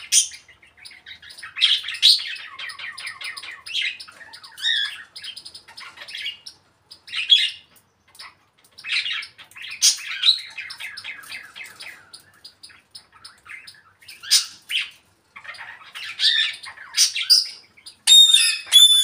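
A parrot chatters and squawks in short bursts nearby.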